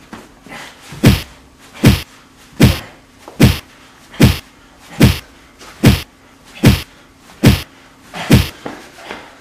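Boxing gloves thump against a body in a steady series of punches.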